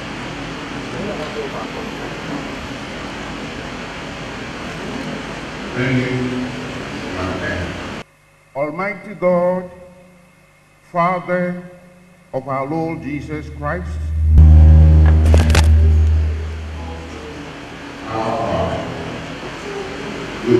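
A man reads aloud calmly through a loudspeaker in a large echoing hall.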